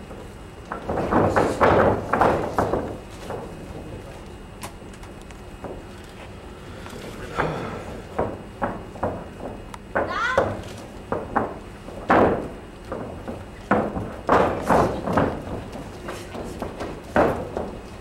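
Wrestlers' bodies thud onto a ring mat.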